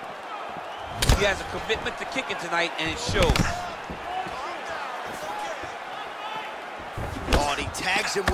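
A kick lands on a body with a sharp thud.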